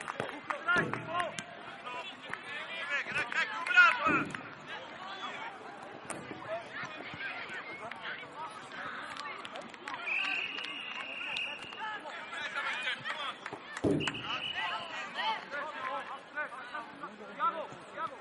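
A ball is kicked with a dull thud.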